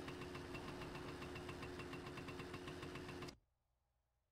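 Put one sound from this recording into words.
A small moped engine idles with a steady buzzing putter, then cuts out.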